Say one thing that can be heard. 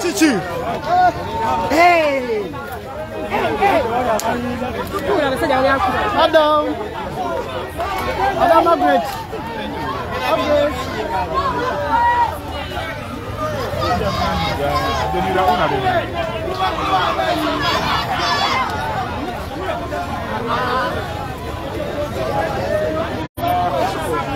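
A large crowd of men and women shout and chant loudly outdoors, close by.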